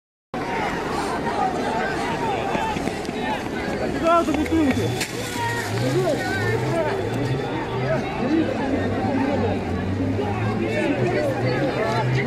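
A crowd of men and women shouts and talks over one another outdoors.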